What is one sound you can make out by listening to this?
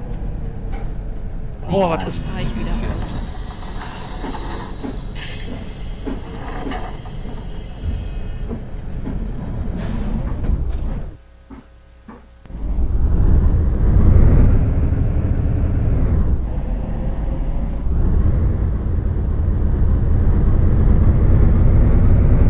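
A bus engine rumbles low and steady, growing louder as it speeds up.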